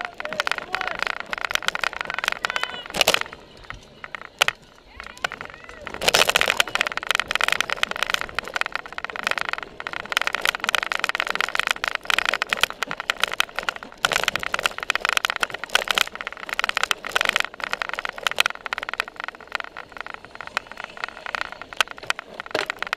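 A bicycle rattles and clatters over bumpy ground.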